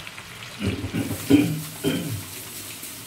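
Shrimp sizzle in a frying pan.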